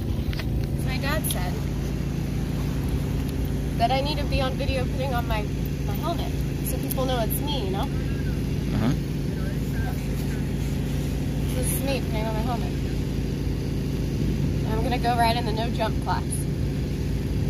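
A young girl talks cheerfully close by.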